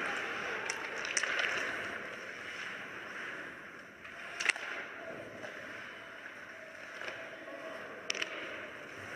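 Ice hockey skates scrape and carve across the ice in an echoing arena.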